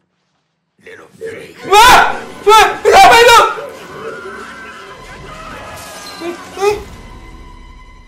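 A young man screams and shouts loudly into a microphone.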